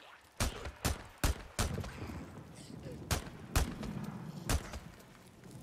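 A rifle fires a rapid series of loud shots.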